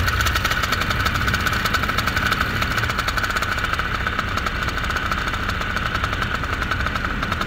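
A small engine drones steadily with a fast, buzzing beat.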